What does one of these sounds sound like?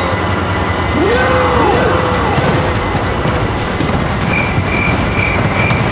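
Train locomotives crash together with heavy metal crunching.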